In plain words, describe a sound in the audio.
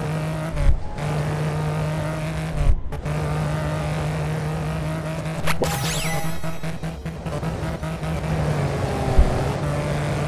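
A car thuds as it bounces and lands hard.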